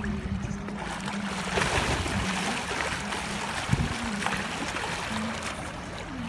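Water splashes as a swimmer kicks with fins at the surface.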